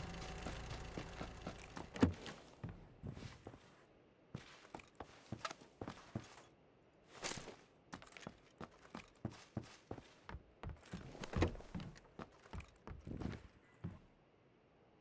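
Footsteps shuffle across a hard floor indoors.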